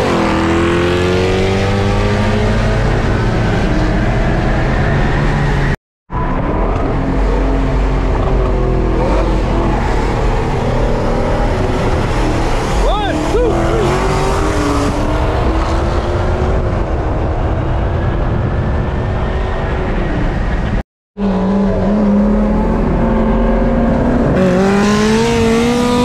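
A powerful car engine roars loudly, its pitch rising as it speeds up.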